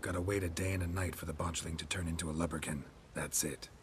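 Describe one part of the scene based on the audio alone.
A man speaks in a low, gravelly voice.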